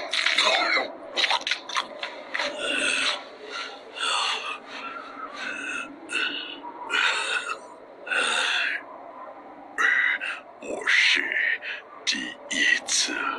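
A man speaks in a strained, hoarse voice, close by.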